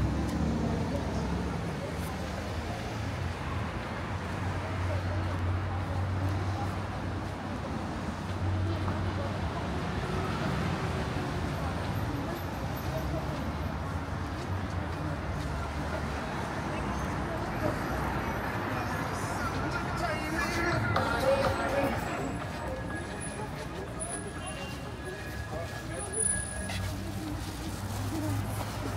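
Footsteps walk steadily on a paved pavement.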